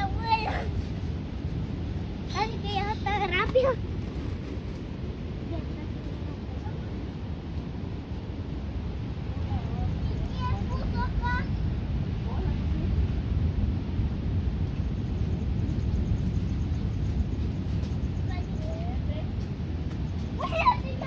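A young girl talks and calls out nearby.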